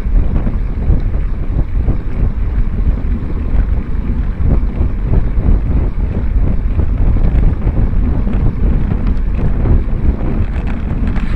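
Wind buffets loudly against a moving bike's microphone.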